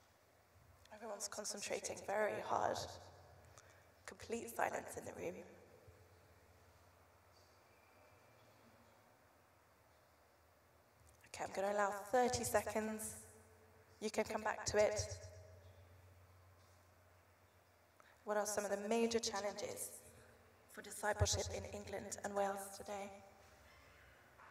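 A young woman speaks calmly through a microphone, with pauses.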